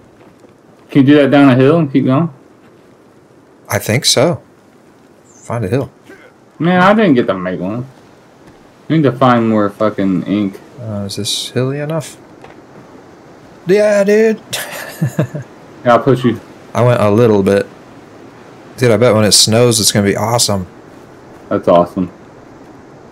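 A man talks casually and with animation into a close microphone.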